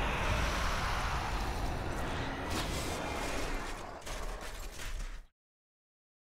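Magic spells crackle and whoosh in a game.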